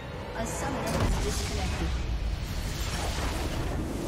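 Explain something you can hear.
A magical blast bursts loudly.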